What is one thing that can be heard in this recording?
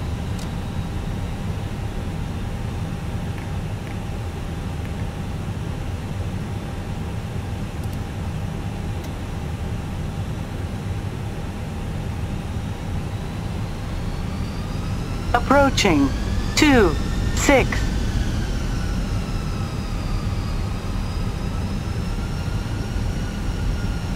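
Airliner turbofan engines roar with a deep rumble.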